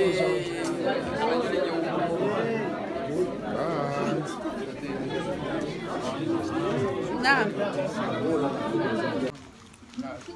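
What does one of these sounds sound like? A crowd of people chatter and sing loudly in a lively room.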